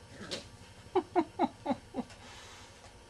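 A puppy yips in a quick run of short, high cries.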